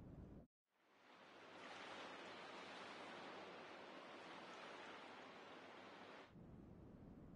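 Sea waves wash softly in the distance.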